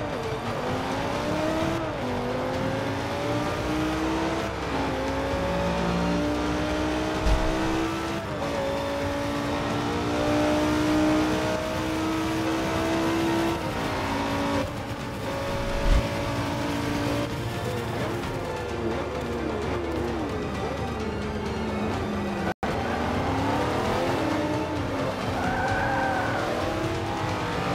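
A racing car engine revs high and climbs through the gears, dropping in pitch at each shift.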